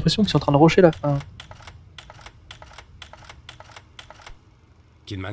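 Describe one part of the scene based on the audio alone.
A slide projector clicks over and over as slides change.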